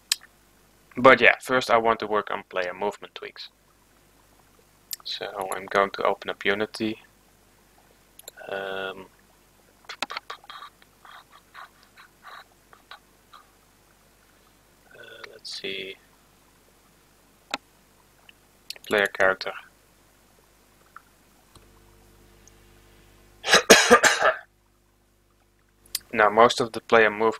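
A young man talks calmly and close to a headset microphone, in short bursts.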